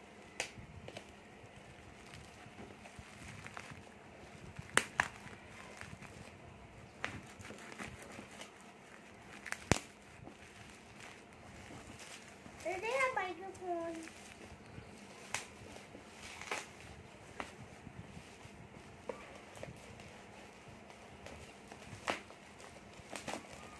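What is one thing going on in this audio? Plastic bubble wrap crinkles and rustles under handling, with sharp crackles now and then.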